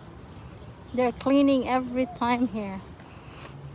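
A young child calls out loudly close by.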